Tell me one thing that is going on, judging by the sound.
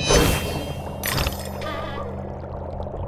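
A shimmering magical chime rings out.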